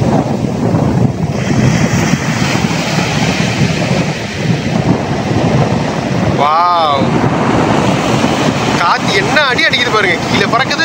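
Small waves wash gently onto a shore.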